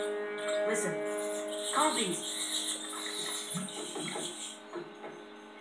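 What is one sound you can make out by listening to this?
Tinny music plays through a television loudspeaker.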